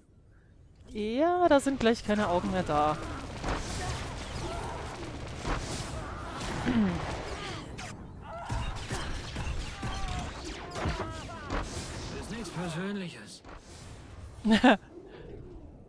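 Blaster shots and energy bursts crackle during a fight.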